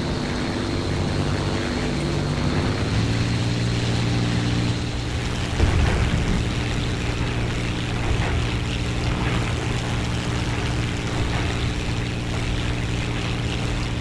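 A propeller engine drones steadily, changing pitch as it climbs and dives.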